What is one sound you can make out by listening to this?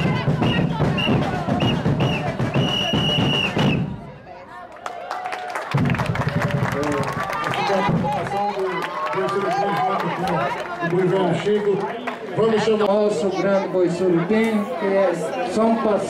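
A band plays lively music with pounding drums, loud and close.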